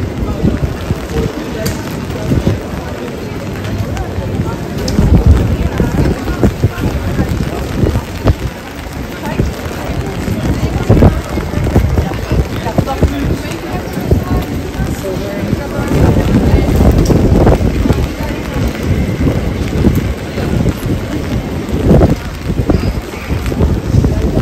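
Footsteps patter on a wet street all around.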